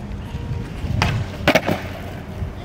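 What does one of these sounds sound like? A skateboard clacks sharply against the ground.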